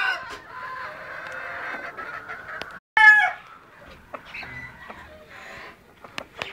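Hens cluck and squawk nearby.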